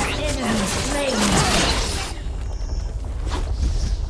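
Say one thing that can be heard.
Spells crackle and blast in a fast fight.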